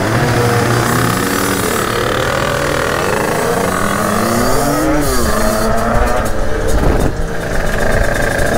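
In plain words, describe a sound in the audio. A motorcycle engine revs up and down close by.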